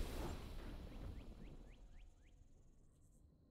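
A bright victory chime rings out with a booming swell and slowly fades.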